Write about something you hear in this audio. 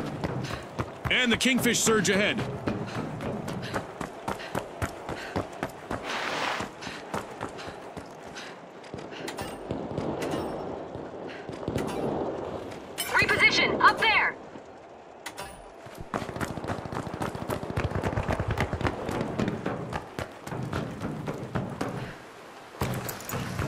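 Footsteps tap quickly on a hard floor.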